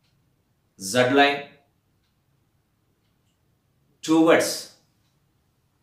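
A middle-aged man speaks calmly into a nearby microphone, in short phrases with pauses.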